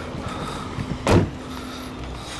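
A car boot lid thuds shut.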